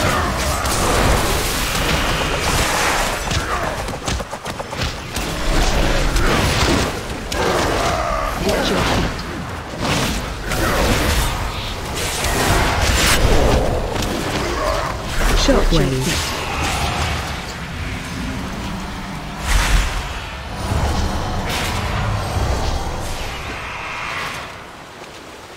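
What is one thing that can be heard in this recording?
Weapon blows strike sharply again and again.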